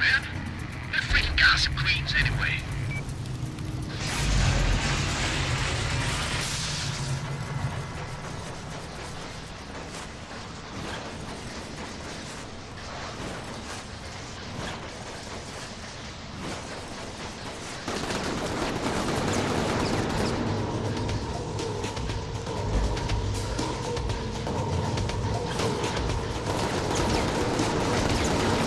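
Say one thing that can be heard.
Game music and effects play.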